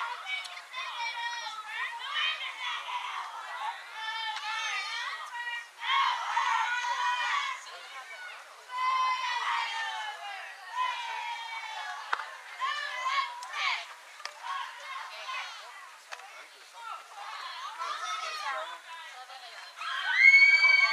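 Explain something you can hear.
Young girls shout and cheer outdoors.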